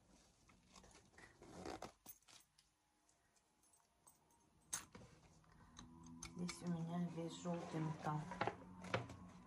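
Leather creaks and rustles as hands handle a bag.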